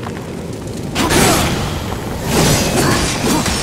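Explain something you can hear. A blade slashes and strikes with heavy, crunching hits.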